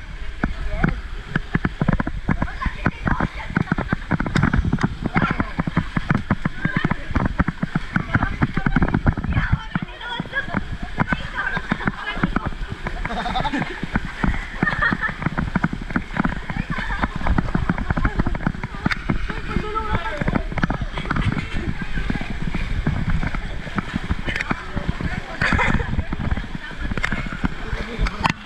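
Water splashes and churns loudly close by.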